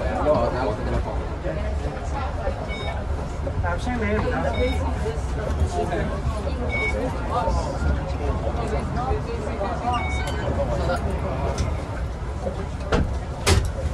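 Young men talk nearby.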